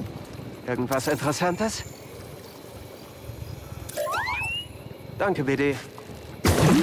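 A small robot beeps and chirps in quick warbling bursts.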